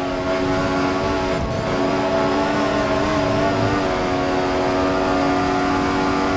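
A racing car engine screams at high revs, its pitch dipping and rising.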